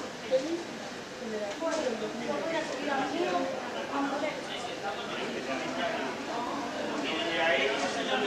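People chatter in the background.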